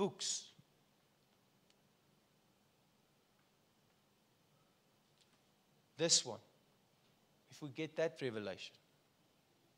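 A man speaks calmly through a microphone, pausing between phrases.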